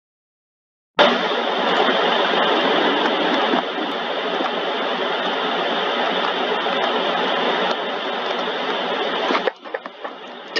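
A car engine runs as the car drives along.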